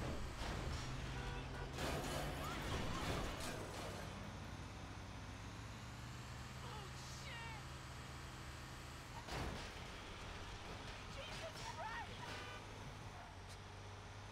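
A garbage truck's diesel engine rumbles steadily as it drives along a road.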